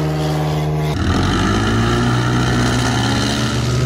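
A car's engine roars loudly.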